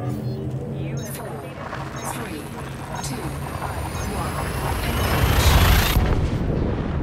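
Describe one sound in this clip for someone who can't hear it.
A rushing whoosh rises in pitch, swells to a roar and cuts off suddenly.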